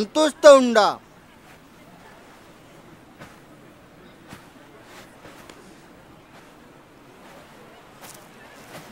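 A crowd murmurs quietly.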